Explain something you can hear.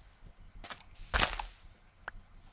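A shovel digs into dirt with a crunch.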